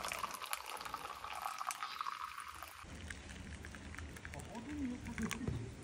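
Hot liquid pours into a plastic cup with a trickling splash.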